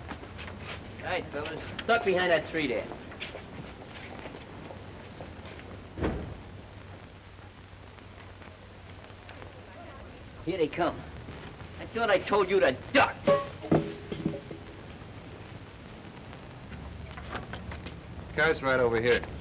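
Young men talk excitedly, close by.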